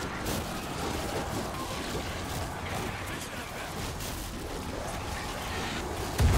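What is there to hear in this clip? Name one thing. Gunfire and blasts crackle in the background.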